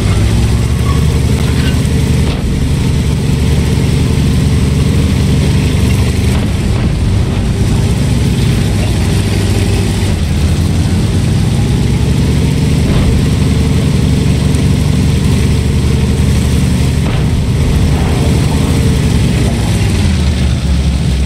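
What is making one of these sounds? A heavy tank engine rumbles and roars steadily.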